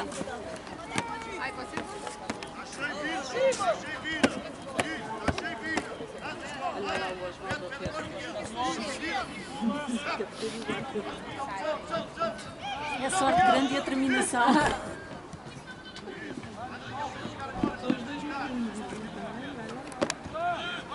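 Young players shout and call to each other across an open field.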